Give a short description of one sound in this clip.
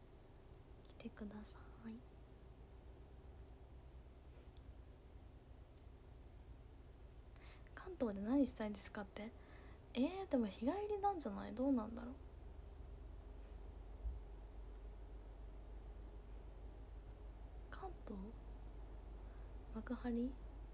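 A young woman speaks softly and casually, close to a phone microphone, in short bursts with pauses.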